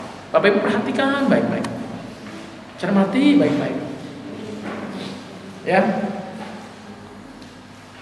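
A middle-aged man speaks through a microphone and loudspeaker in an echoing room, in short bursts.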